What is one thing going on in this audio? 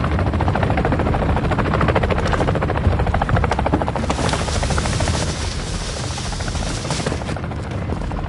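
A helicopter's rotor thumps loudly and steadily close by.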